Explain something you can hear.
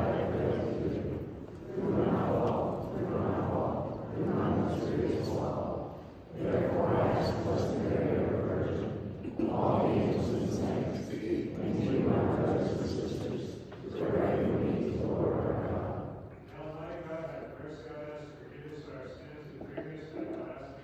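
A congregation of men and women sings together in an echoing hall.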